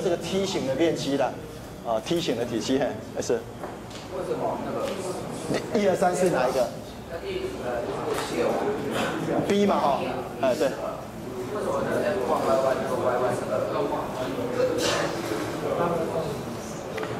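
A man lectures steadily into a clip-on microphone.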